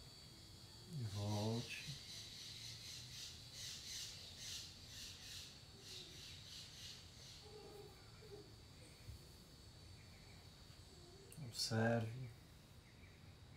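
A man speaks calmly and softly close by.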